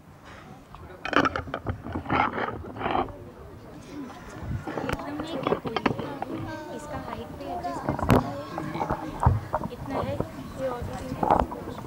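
Children chatter and talk in an echoing hall.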